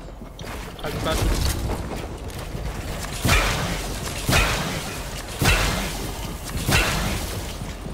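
Building pieces snap into place with sharp clacks.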